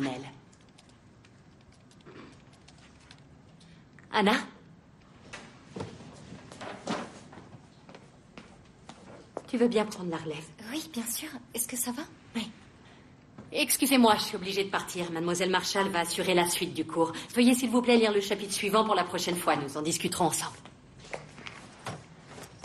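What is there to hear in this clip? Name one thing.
A young woman answers quietly.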